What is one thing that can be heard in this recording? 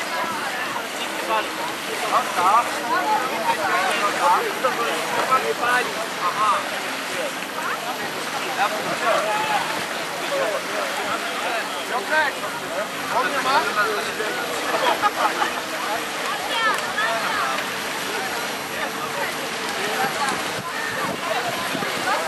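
A crowd of people chatter and call out nearby outdoors.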